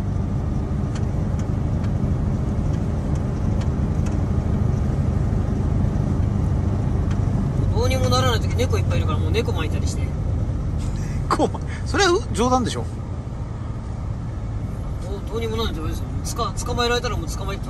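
A heavy truck engine rumbles steadily inside the cab.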